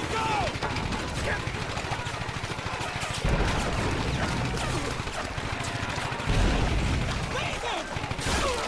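Explosions boom heavily nearby.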